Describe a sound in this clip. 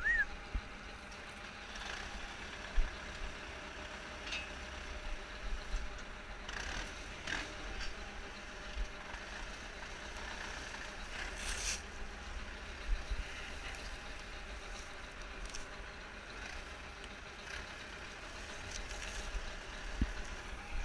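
A tractor engine idles steadily nearby.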